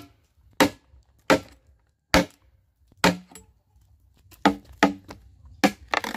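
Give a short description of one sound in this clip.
A machete chops into a green bamboo pole.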